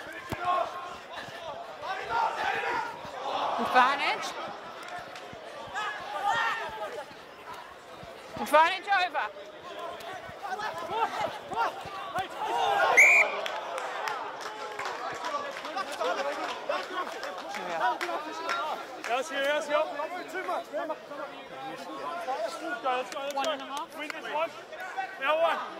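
Rugby players shout to one another across an open field.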